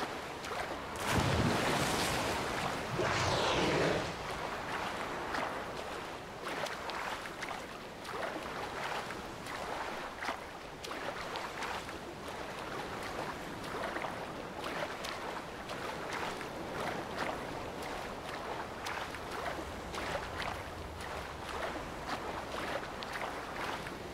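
A swimmer splashes steadily through choppy water.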